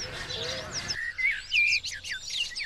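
A blackbird chirps nearby.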